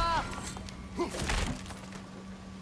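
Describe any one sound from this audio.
A chest bursts open with a loud crash.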